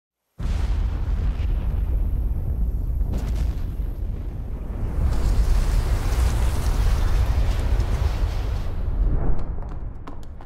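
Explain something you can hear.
Nuclear explosions rumble deeply and roar.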